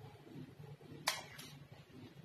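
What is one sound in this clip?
A metal spoon clinks against a tin.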